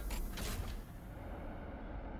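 A small flying drone whirs and hisses as its thruster fires.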